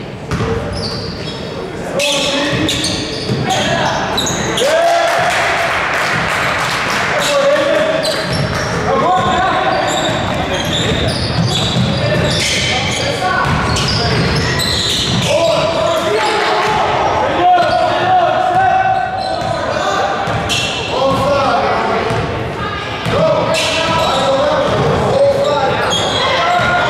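Spectators shout and cheer in a large echoing gym.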